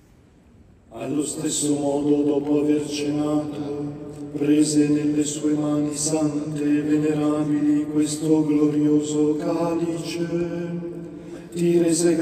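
A man chants steadily through a loudspeaker in a large echoing hall.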